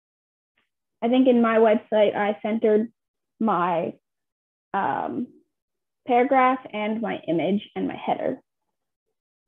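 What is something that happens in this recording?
A young woman speaks calmly into a microphone, heard through an online call.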